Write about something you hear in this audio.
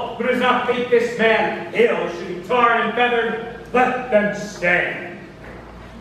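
A young man sings loudly.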